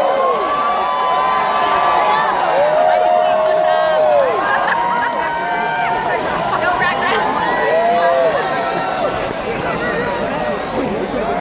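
An orchestra plays loudly in a large open-air space.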